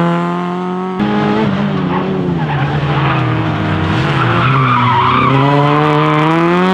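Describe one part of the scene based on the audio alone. A second car engine roars and revs hard close by.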